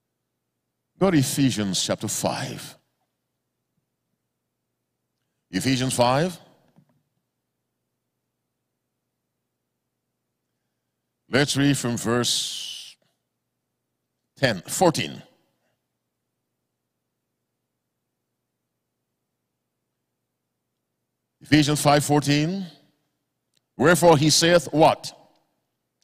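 A man preaches into a microphone in short, emphatic bursts with long pauses.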